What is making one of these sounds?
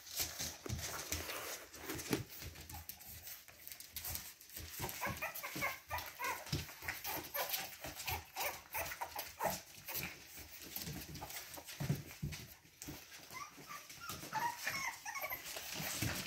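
Puppies scamper and scratch across a wooden floor.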